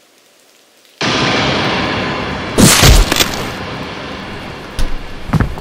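A woman screams loudly.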